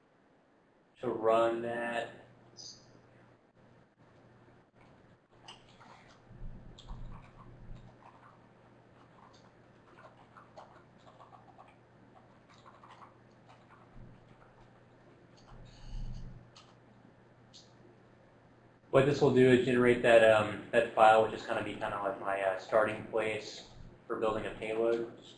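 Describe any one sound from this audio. A man lectures through a microphone in a large room.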